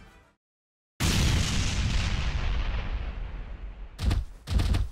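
Flames roar loudly.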